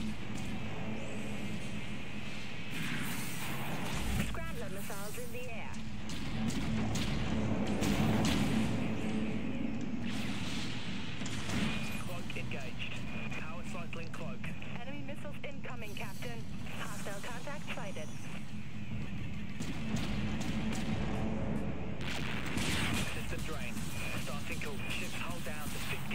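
Laser weapons fire in rapid bursts.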